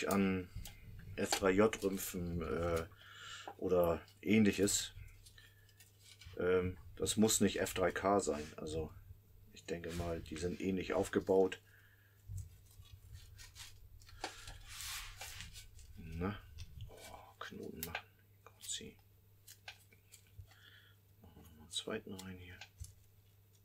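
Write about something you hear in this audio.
An elderly man talks calmly close by.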